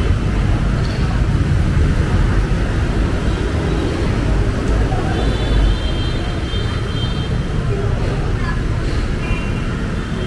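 Wind blusters loudly outdoors.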